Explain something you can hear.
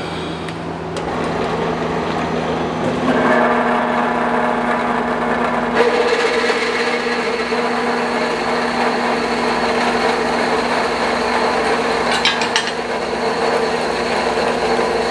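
A band saw motor starts and hums steadily.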